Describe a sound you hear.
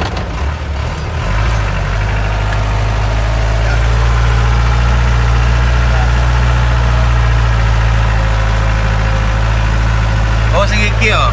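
A vehicle engine rumbles steadily from close by.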